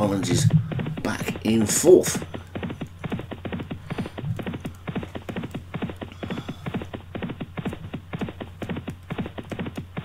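Horses' hooves drum rapidly on turf at a gallop.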